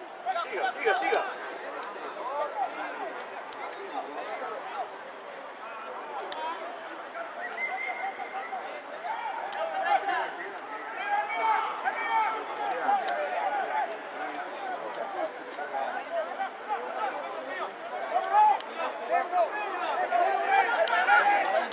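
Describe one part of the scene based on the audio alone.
Men shout and call to one another outdoors.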